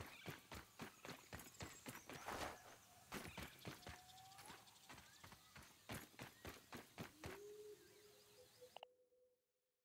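Footsteps crunch quickly over the ground.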